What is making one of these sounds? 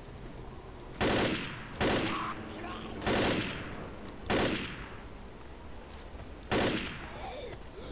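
A rifle fires in short bursts.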